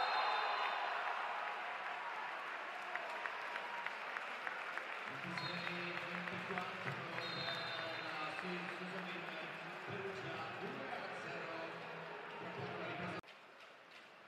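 A large crowd cheers and applauds loudly in a big echoing hall.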